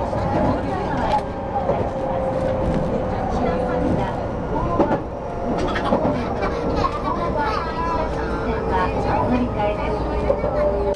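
Train wheels squeal and click over points.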